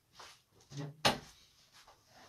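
A thud sounds as something is set down.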